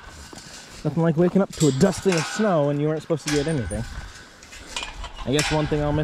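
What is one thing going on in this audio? A metal gate latch clanks and rattles.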